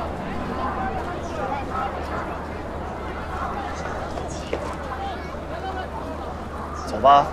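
A crowd of people chatters in the background outdoors.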